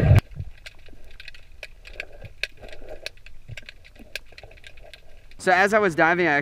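Underwater clicks and crackles sound through the water.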